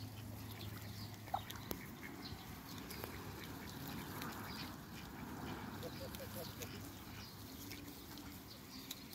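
Ducks peck and nibble at the grass.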